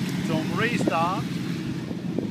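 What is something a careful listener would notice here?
A motorcycle engine revs sharply, its pitch rising quickly.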